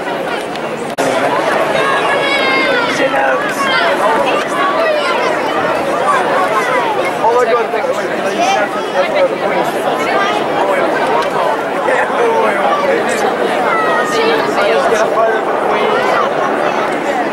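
A large crowd cheers and whistles loudly.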